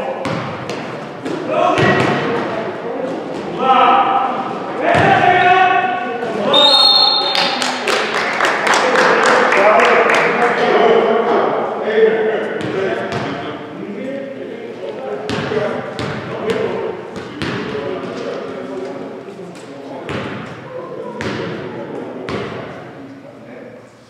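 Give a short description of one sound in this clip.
Young men shout and call out during play.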